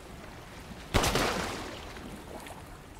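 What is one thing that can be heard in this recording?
A pistol fires a single loud shot that echoes away.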